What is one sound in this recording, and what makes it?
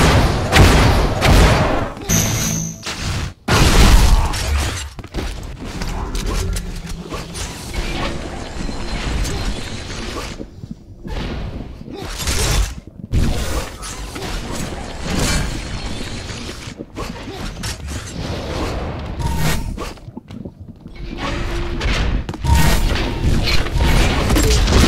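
Rapid gunfire and blasts from a video game crackle and boom.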